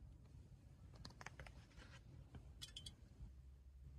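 A card slides and rustles against a paper page.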